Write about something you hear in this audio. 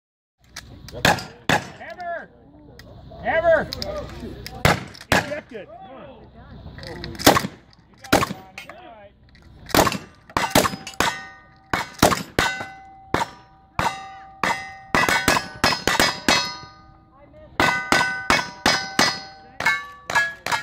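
Gunshots crack loudly outdoors in quick succession.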